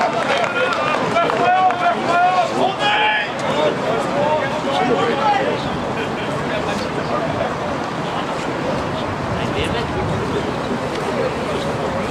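A crowd of spectators murmurs and chatters nearby.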